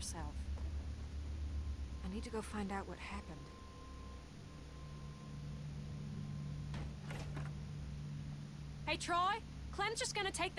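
A young woman speaks earnestly, close by.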